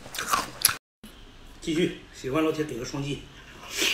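A man chews meat with wet smacking sounds.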